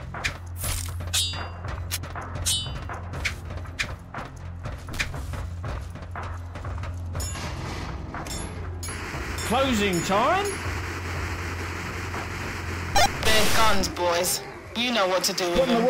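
Footsteps clank on a metal grate.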